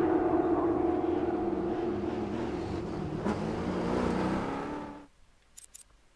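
A rally car engine roars and revs loudly, then suddenly cuts out.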